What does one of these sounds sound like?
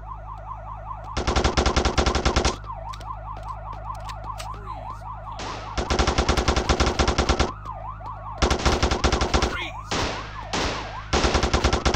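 A police siren wails steadily throughout.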